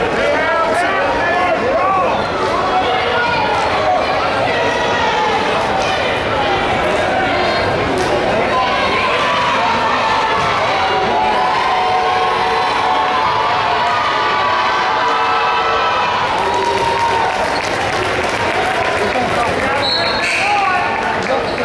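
A large crowd chatters and shouts in an echoing gym.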